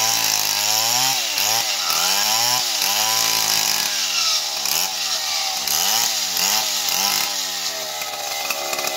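A chainsaw engine roars loudly, its pitch rising and falling as it cuts into a log.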